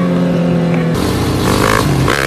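A dirt bike engine roars up close.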